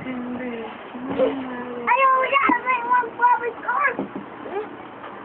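A small child squeals and babbles close by.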